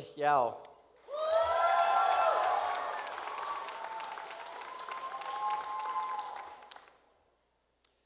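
People clap and cheer.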